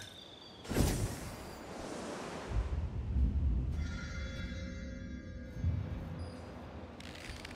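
Wind rushes past while gliding through the air.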